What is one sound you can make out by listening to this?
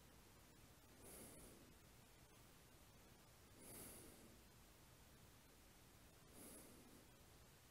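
A man breathes out slowly.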